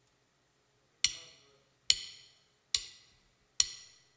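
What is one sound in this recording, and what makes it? Drumsticks click sharply four times in a count-in.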